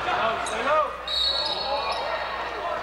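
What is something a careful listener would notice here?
A referee's whistle blows a short shrill blast.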